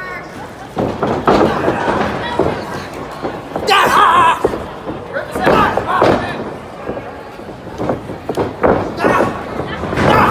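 Slaps and thuds ring out as wrestlers grapple.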